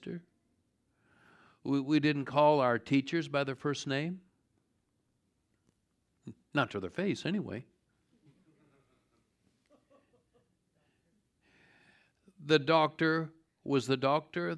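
A middle-aged man speaks calmly and clearly through a microphone, pausing between phrases.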